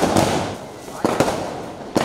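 Plastic wrapping rustles.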